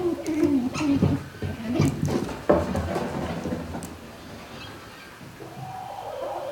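Chickens cluck and squawk nearby.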